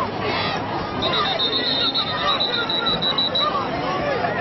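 A whistle blows several short shrill blasts.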